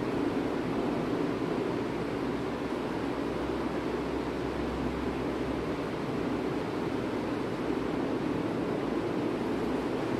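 A marker squeaks on a whiteboard.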